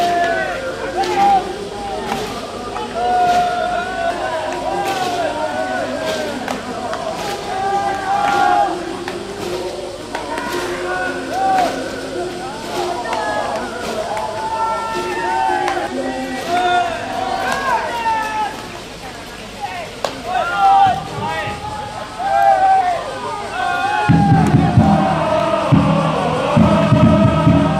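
A baseball smacks into a leather glove.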